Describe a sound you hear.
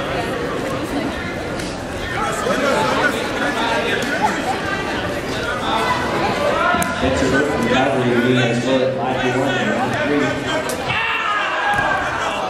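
Wrestlers' shoes squeak on the mat.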